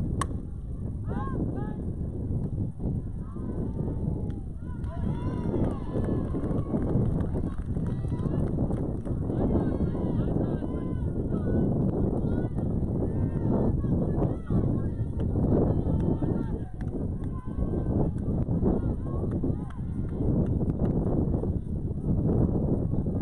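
Young girls shout and cheer from a distance.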